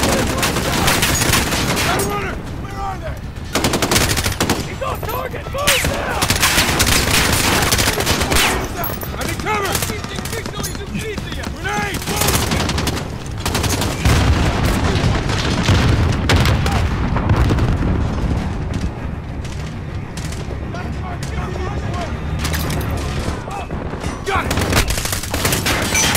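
Rifle gunfire crackles in rapid bursts.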